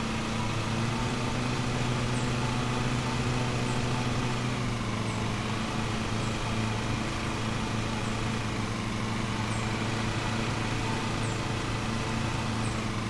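A riding lawn mower engine hums steadily.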